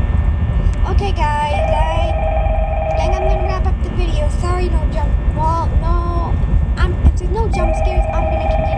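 A young boy talks close to a microphone.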